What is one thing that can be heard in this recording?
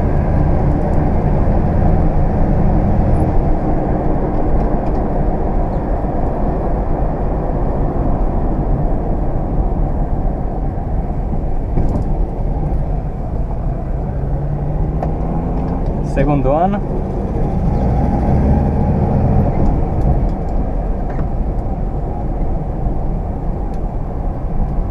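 An old car engine rumbles steadily while driving.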